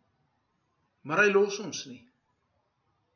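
A middle-aged man speaks a short phrase with animation, close to a microphone.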